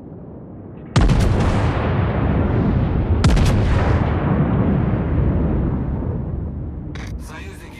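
Heavy naval guns fire with deep booming blasts.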